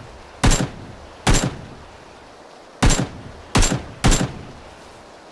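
A rifle fires single loud shots that echo across open ground.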